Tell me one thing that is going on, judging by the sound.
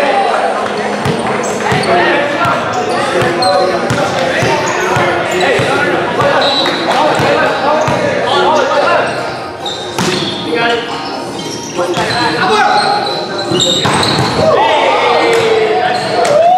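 Several men talk and call out in a large echoing gym.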